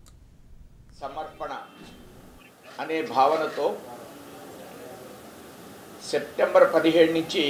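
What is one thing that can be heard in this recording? A middle-aged man speaks formally into a microphone.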